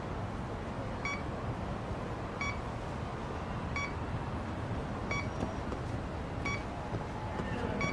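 A handheld detector beeps at a steady, regular pace.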